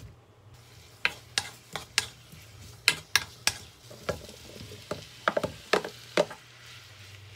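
A wooden spoon scrapes and knocks against a pan.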